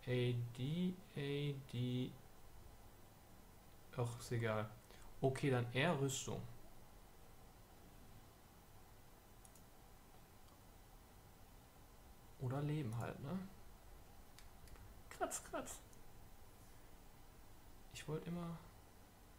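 A middle-aged man talks calmly and close to a microphone, in short bursts with pauses.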